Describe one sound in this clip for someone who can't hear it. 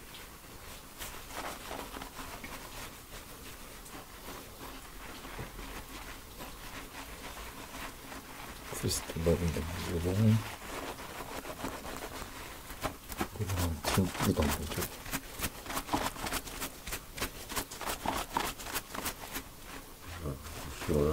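Fingers scrub and squish through foamy, lathered hair close by.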